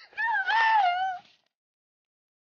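A woman screams in pain close by.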